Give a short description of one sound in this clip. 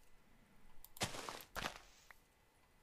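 Grass crunches as a block of turf is broken.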